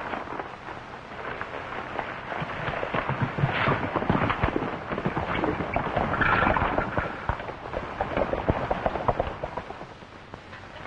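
Horses gallop away over dirt.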